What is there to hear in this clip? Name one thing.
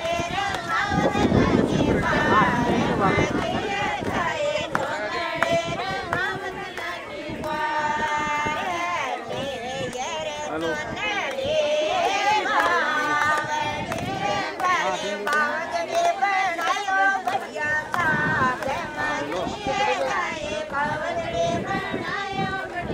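A group of women sing together nearby.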